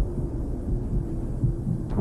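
A fiery blast bursts with a deep rumble.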